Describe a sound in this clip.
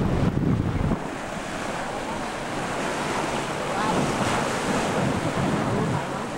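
Small waves wash and splash onto the shore.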